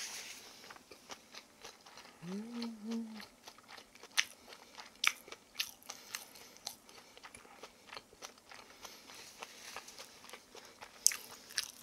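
A young woman chews food loudly and wetly close to a microphone.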